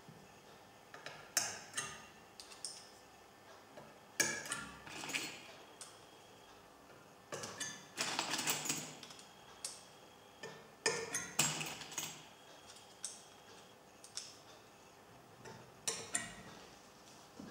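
Metal tools clink and scrape against a metal part in a vise.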